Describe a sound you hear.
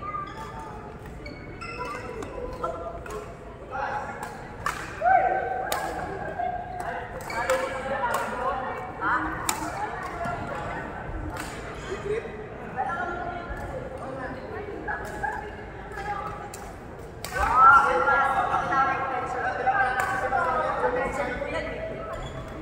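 Young adults talk and call out casually nearby, echoing in the hall.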